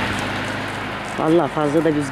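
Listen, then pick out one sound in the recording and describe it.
A car approaches on a dirt road with a low engine hum.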